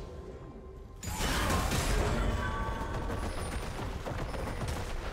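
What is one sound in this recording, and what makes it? Video game spell effects whoosh and crackle as characters fight.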